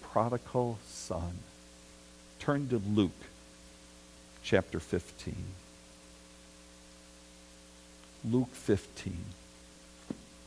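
A middle-aged man speaks calmly in short phrases through a microphone.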